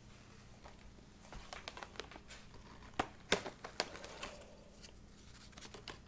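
Hands knock and tap on a desk close by.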